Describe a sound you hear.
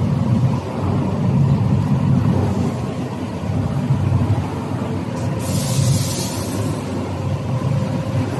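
A machine drum spins with a steady low rumble.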